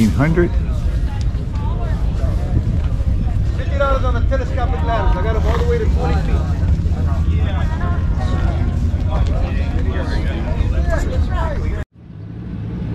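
Men and women chat in the distance.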